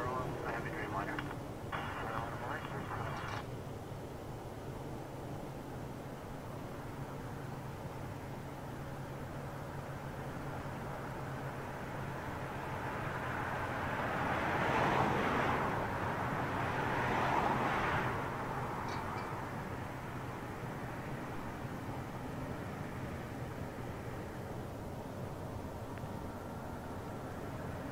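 A jet airliner roars as it climbs away overhead, its rumble swelling and then slowly fading.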